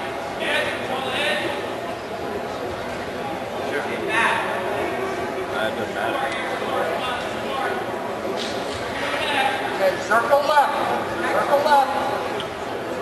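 A mixed crowd of spectators calls out and talks in an echoing gym.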